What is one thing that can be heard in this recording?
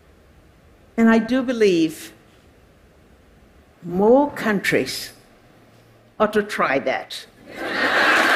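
An elderly woman speaks slowly into a microphone in a large hall.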